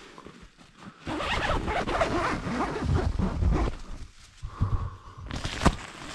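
Tent fabric rustles and scrapes close by.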